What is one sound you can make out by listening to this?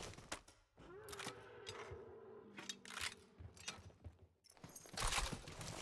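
A weapon clicks and clatters as it is handled.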